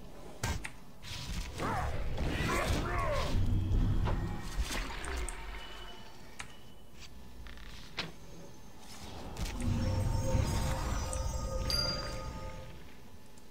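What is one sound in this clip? Magic spells whoosh and rumble during a fight.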